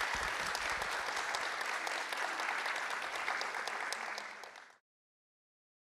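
An audience applauds in a large hall, then the applause fades out.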